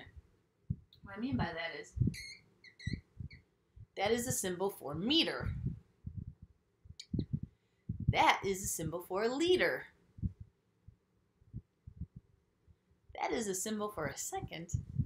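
A young woman speaks calmly and clearly to a listener, close to a microphone.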